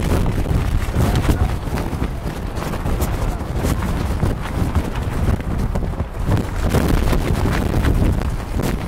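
Players slap hands as they pass in a handshake line.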